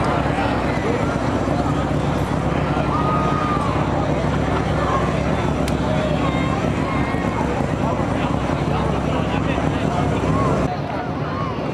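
Several motorcycle engines roar loudly.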